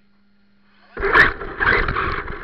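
A toy car's electric motor whines as it speeds off.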